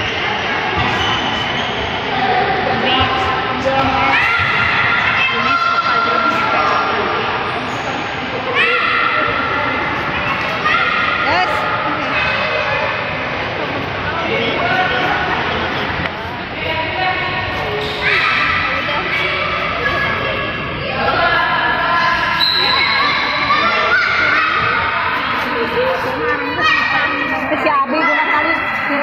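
Children shout and call out, echoing in a large hall.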